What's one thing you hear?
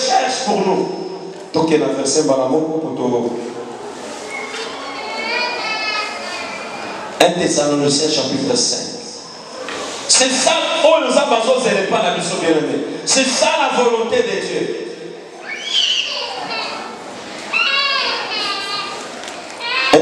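A young man preaches with animation into a microphone, heard through loudspeakers in an echoing hall.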